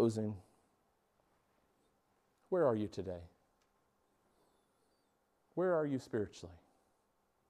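A middle-aged man speaks in short, emphatic bursts with long pauses between them.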